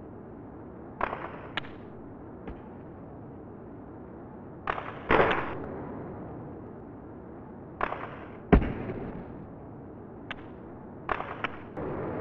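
A hockey stick smacks a puck with sharp clacks.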